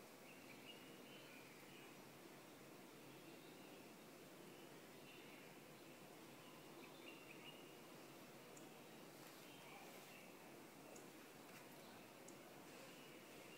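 A finger taps lightly on a glass touchscreen.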